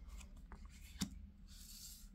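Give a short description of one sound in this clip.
A card is set down on a wooden table with a light tap.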